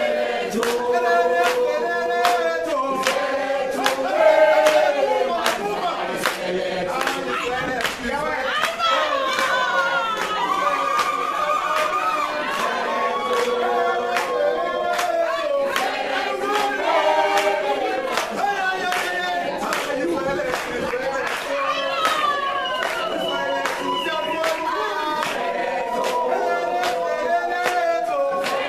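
A crowd of young people sings together loudly in a large echoing room.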